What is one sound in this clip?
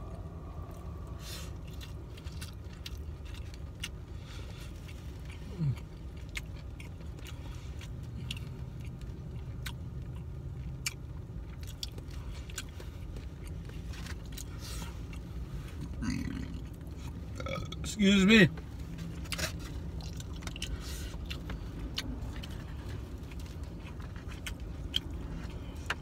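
A plastic fork scrapes and clicks against a foam food container.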